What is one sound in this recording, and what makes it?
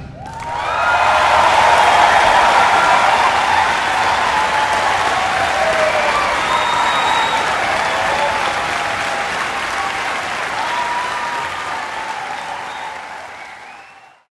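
An orchestra plays music in a large hall.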